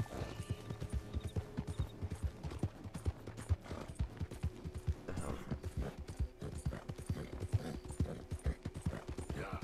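Horse hooves pound steadily on a dirt trail at a gallop.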